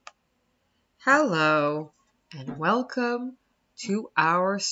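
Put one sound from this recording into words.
A woman sings in a lilting voice through a webcam microphone.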